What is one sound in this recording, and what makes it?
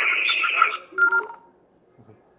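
A two-way radio gives a short beep as the transmission ends.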